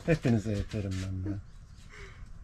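A young woman talks softly close by.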